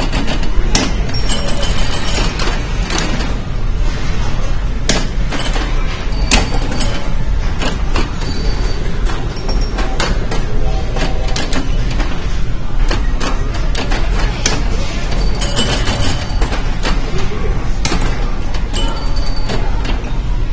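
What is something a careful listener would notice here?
A pinball machine's flippers clack as a ball is played.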